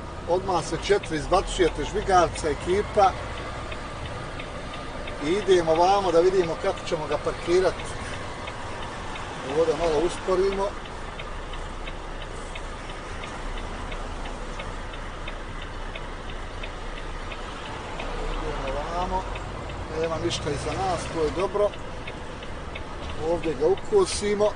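A man talks in bursts close by, with animation.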